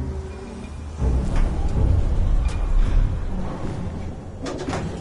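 A heavy metal door rumbles and thuds open.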